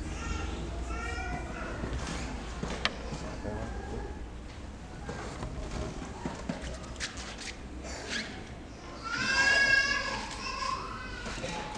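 A congregation murmurs and chatters in a large echoing hall.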